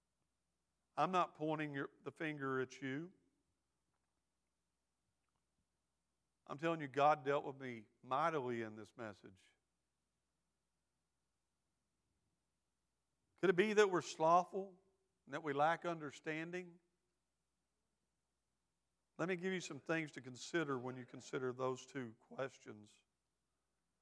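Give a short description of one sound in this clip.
A middle-aged man speaks slowly through a microphone, with long pauses.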